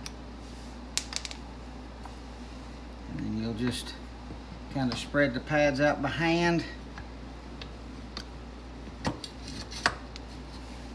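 Metal parts click and clink as they are handled.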